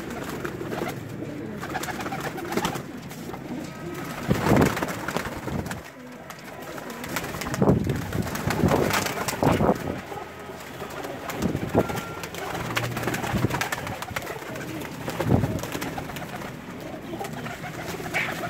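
Pigeons flutter their wings now and then.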